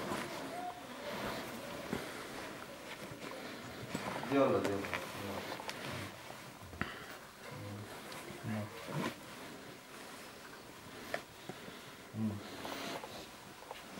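Shoelaces rustle as they are pulled tight.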